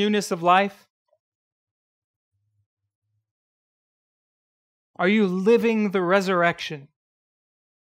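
A man speaks calmly and expressively, close to a microphone.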